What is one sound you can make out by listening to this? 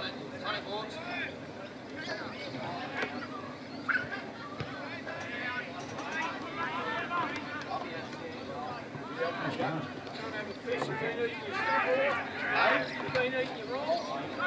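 Spectators call out and cheer from the sideline.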